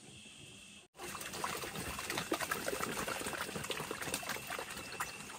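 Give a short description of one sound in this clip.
Wet feed splashes as it pours from a bucket.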